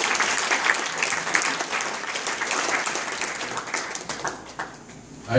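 An audience claps in a hall.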